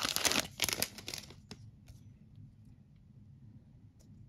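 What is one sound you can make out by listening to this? Trading cards rustle and slide against each other.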